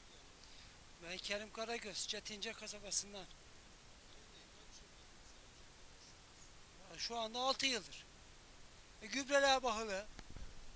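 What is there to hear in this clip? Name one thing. A middle-aged man speaks into a microphone close by, calmly and in short bursts.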